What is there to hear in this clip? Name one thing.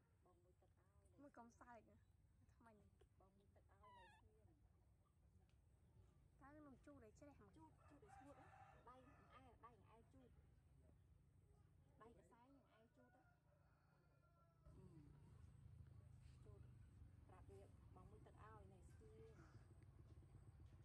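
A baby monkey squeaks and whimpers close by.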